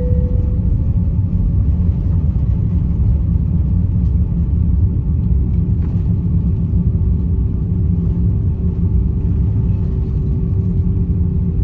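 Jet engines roar steadily as an airliner rolls along the ground.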